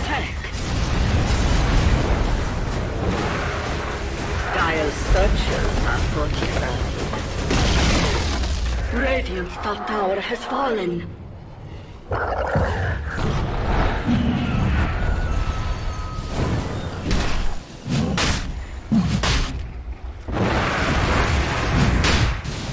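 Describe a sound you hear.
Game fight effects clash and burst in quick succession.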